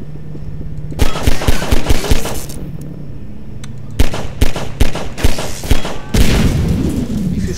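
Gunshots ring out in quick bursts, loud and close.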